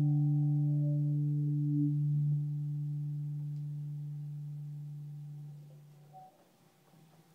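An electric bass guitar plays a low note that rings out and slowly fades.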